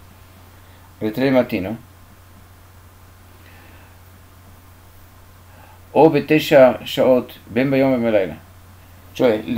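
An elderly man speaks calmly and closely, in short bursts with pauses.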